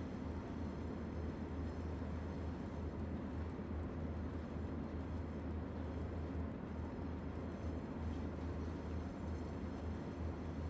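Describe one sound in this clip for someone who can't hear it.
A train engine rumbles steadily.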